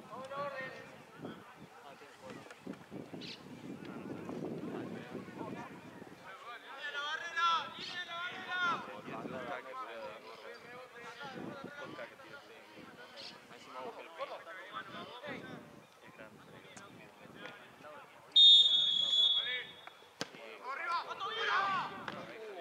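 Young men shout across an open field outdoors.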